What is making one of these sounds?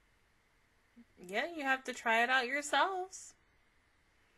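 A young woman speaks briefly and animatedly into a close microphone.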